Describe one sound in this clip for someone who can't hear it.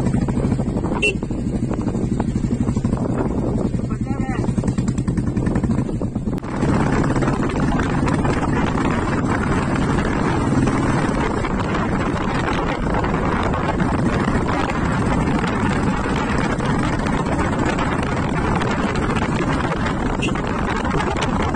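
A motorbike engine hums steadily while riding along.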